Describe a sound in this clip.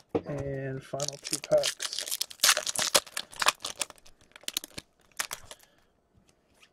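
Plastic card sleeves crinkle and rustle in hands.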